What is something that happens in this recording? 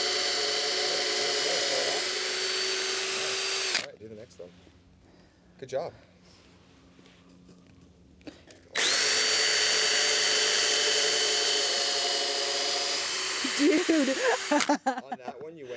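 A cordless drill whirs loudly, driving screws into wood.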